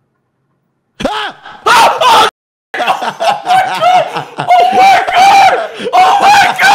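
A young man shouts excitedly over a microphone.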